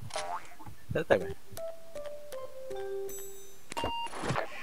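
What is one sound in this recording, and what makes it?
Keypad buttons beep in quick steps as a code is entered.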